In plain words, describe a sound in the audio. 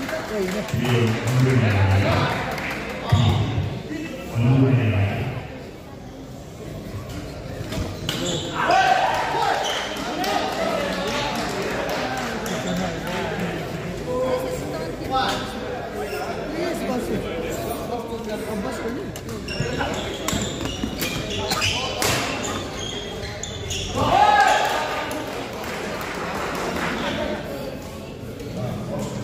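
Spectators chatter in the background.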